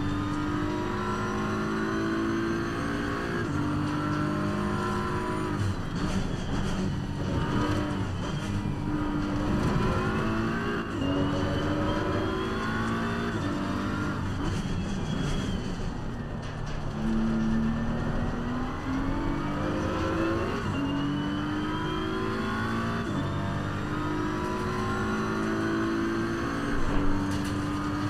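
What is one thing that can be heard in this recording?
A racing car engine roars, revving up and down through the gears.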